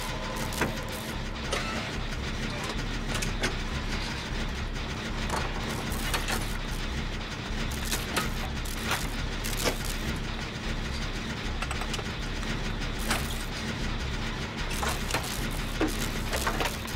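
Metal parts clank sharply now and then.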